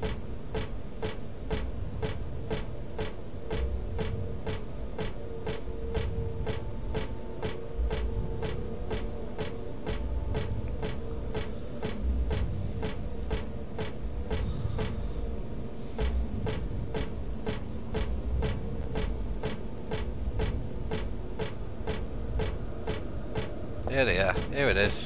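Quick running footsteps tap on a hard floor.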